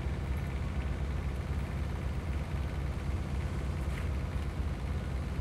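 A machine engine rumbles steadily nearby.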